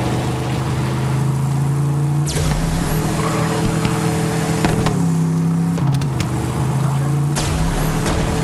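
A buggy engine hums steadily, shifting pitch as it drives.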